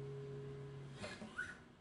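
Fingers brush against guitar strings with a short scrape.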